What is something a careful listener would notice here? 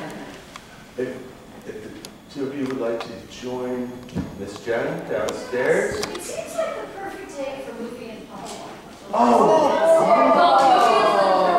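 A man speaks to a gathering in a room with some echo.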